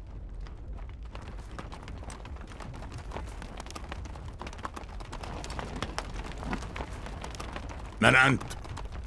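Horses' hooves thud on dry ground.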